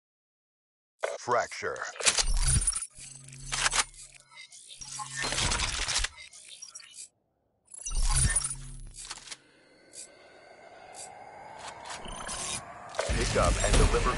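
Video game gunfire rattles in rapid bursts.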